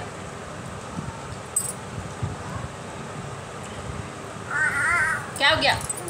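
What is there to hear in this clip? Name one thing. A woman sips a drink loudly.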